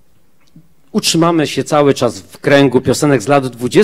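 A group of men sing together in harmony through microphones.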